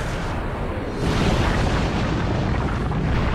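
A stone wall crumbles and crashes down in a rumbling cloud of dust.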